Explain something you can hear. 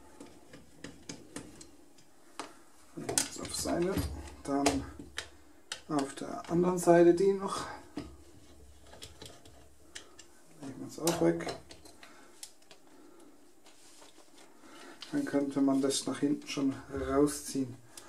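Small plastic and metal parts click and tap as they are handled.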